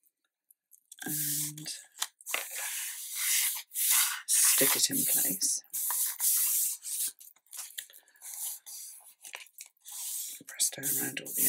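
Sheets of paper rustle and slide against each other.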